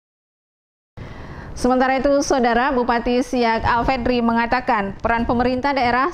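A woman speaks clearly into a microphone.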